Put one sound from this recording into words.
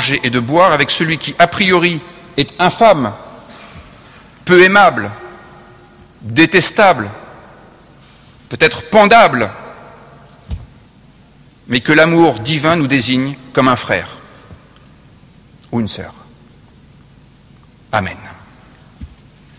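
A man speaks slowly and solemnly into a microphone, with pauses, his voice echoing in a large hall.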